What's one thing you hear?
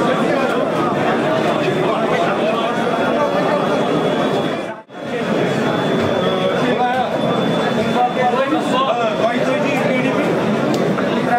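A crowd of men talk all at once nearby, a steady murmur of many voices.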